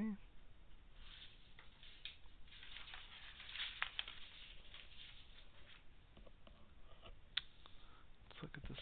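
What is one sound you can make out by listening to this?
Paper rustles and slides as it is handled close by.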